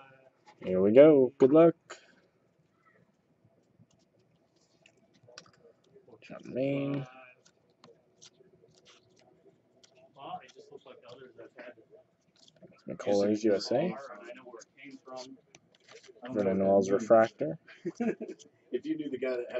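Trading cards flick and slide against each other.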